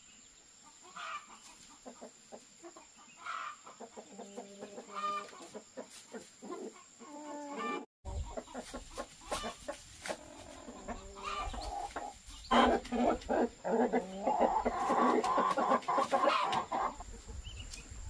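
Chickens cluck nearby.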